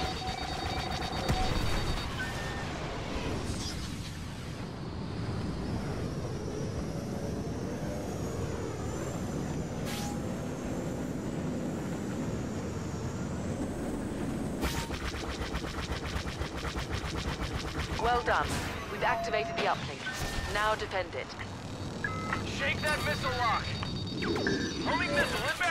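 A starfighter engine roars steadily.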